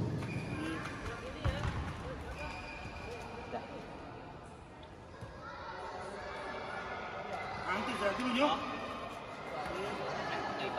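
Young men talk nearby in a large echoing hall.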